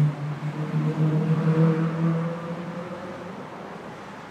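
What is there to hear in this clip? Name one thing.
Car engines rumble in nearby traffic, then fade away.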